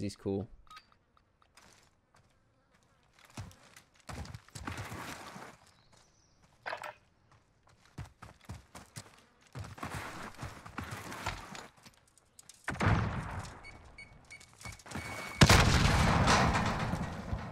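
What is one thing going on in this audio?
A young man talks into a close microphone with animation.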